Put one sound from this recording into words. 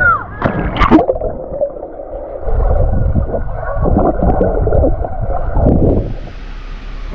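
Water rushes and bubbles underwater.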